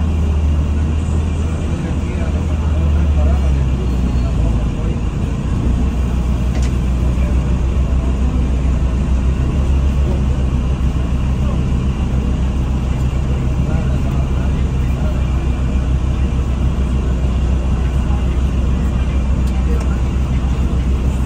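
The bus rattles and rumbles as it moves.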